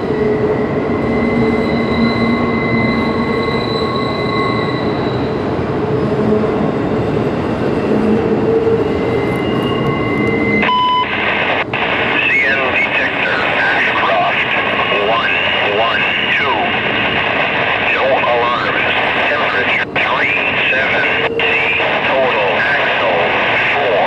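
A long freight train rumbles and clatters steadily across a bridge.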